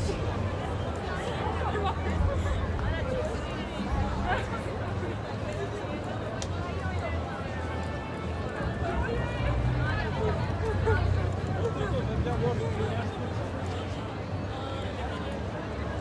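Footsteps scuff on paving stones.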